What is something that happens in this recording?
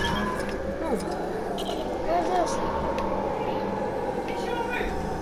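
Upbeat electronic game music plays steadily.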